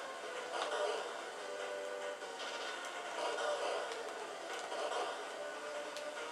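Upbeat chiptune video game music plays steadily.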